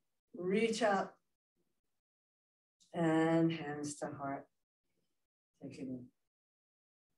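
A woman speaks calmly and slowly into a close microphone, with long pauses.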